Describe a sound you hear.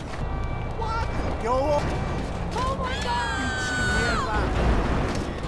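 A man cries out while falling.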